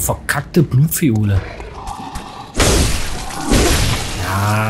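A heavy blade slashes and strikes with a wet impact.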